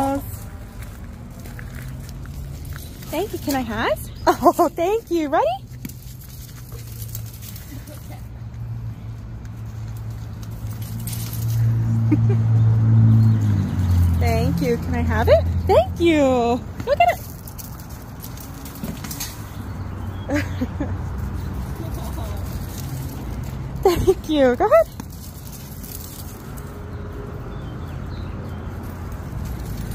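A dog's paws patter and crunch on gravel.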